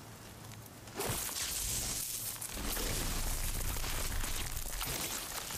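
A spear strikes and shatters a brittle plant.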